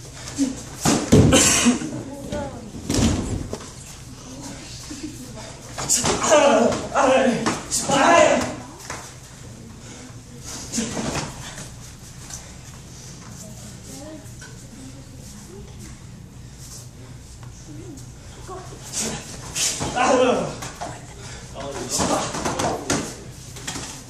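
Young fighters kick and strike padded chest protectors with sharp thuds.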